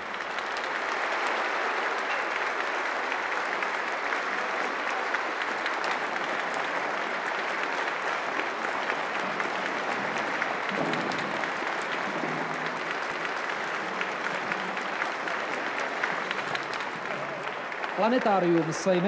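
A large crowd claps and cheers in a big echoing hall.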